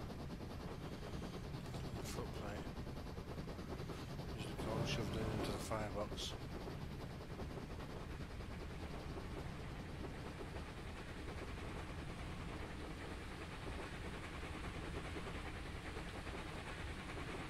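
A steam locomotive rumbles steadily along the track.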